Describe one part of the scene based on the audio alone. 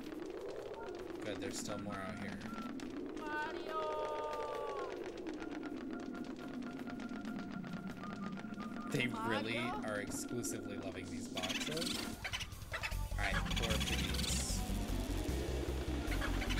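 Video game sound effects chime and whoosh.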